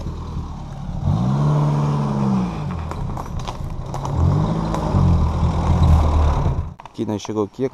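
A truck engine revs hard as it climbs.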